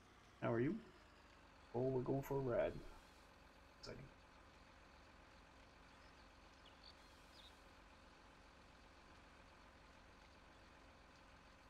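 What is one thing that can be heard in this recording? A forestry machine's engine hums steadily.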